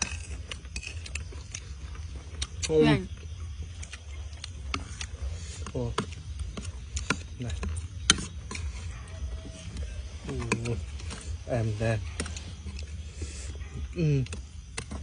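Spoons clink and scrape against plates.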